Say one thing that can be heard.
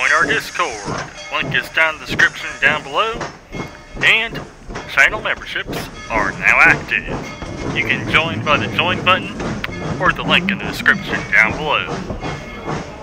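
Steel wheels squeal against the rails.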